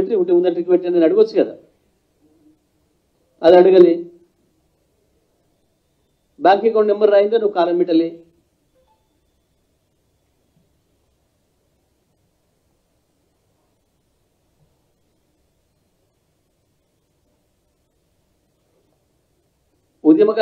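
A middle-aged man speaks into a microphone with emphasis, in short bursts with long pauses.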